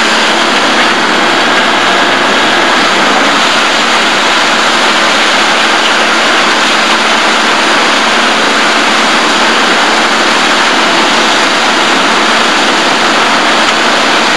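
A grapple clatters as a machine tears through brush.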